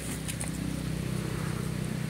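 Dry leaves rustle under a monkey's feet.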